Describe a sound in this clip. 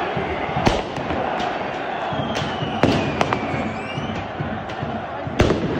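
Firecrackers bang sharply now and then.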